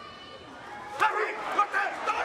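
Two wrestlers' bodies slap together with a sharp smack.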